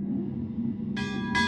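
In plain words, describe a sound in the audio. A smaller bell rings in quick higher strokes.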